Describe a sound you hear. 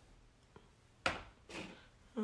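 Something is set down on a table with a light knock.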